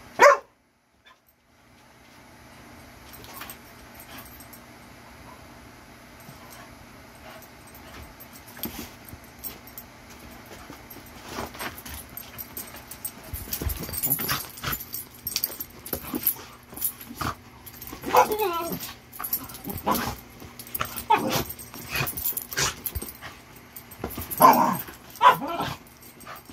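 Dogs scuffle and thump on a carpeted floor.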